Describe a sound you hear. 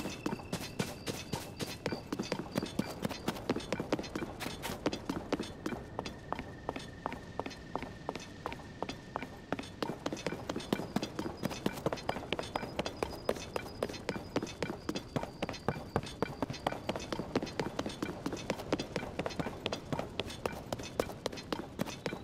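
Quick footsteps run over stone and wooden planks.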